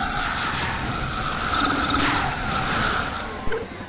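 A magic beam zaps and hums.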